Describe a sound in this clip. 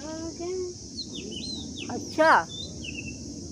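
A young girl squeals shrilly.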